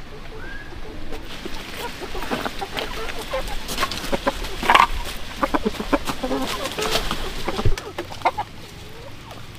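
Leaves rustle and snap as a hand picks them from a plant.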